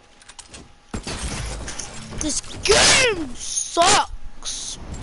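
Gunshots crack in quick bursts in a game.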